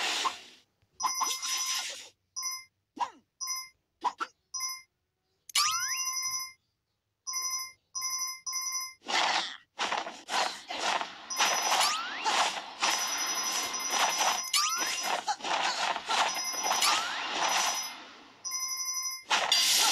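Bright game chimes ring in quick bursts.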